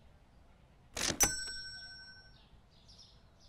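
A payment terminal beeps.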